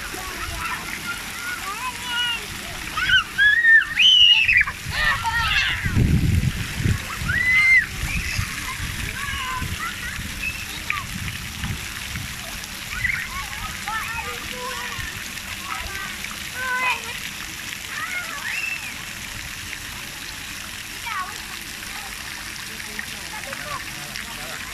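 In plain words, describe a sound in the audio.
Young children shout and squeal nearby in play.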